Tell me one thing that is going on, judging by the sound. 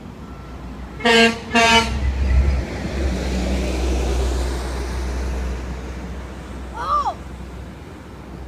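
A heavy truck rumbles past on the road and fades away.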